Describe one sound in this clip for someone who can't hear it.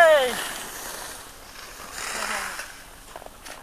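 Skis scrape and hiss across snow.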